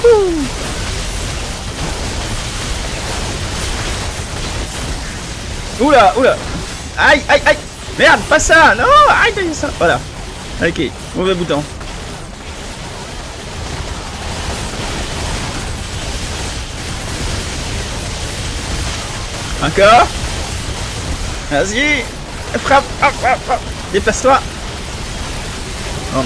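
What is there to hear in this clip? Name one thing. Energy blasts zap and crackle in a fight.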